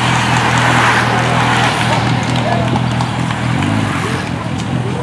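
Spectators cheer and clap at the roadside.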